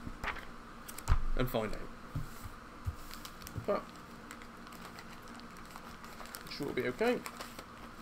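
Paper pages rustle and flip as a book is handled.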